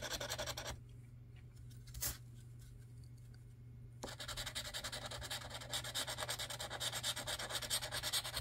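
A scratcher scrapes rapidly across a lottery ticket.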